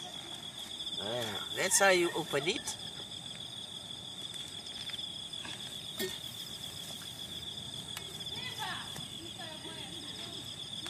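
A young child calls out nearby in a high voice.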